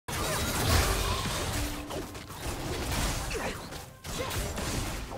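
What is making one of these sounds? Video game combat effects whoosh, crackle and thud rapidly.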